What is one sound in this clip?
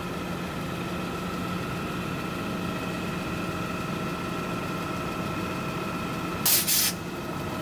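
A garbage truck engine idles with a steady hum.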